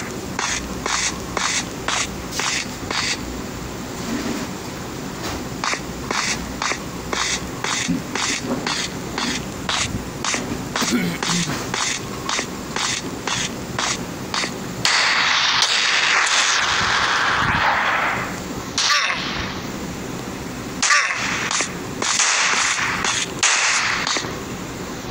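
Footsteps tread at a quick, steady pace.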